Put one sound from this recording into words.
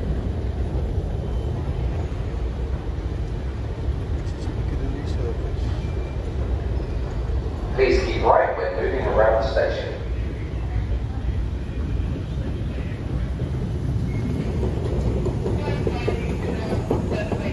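An escalator rumbles steadily in a large echoing tunnel.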